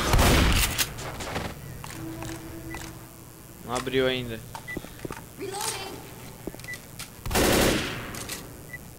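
Gunshots blast loudly and sharply.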